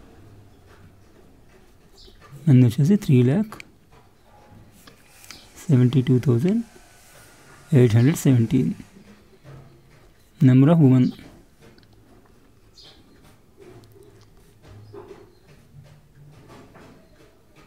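A pen scratches on paper as someone writes.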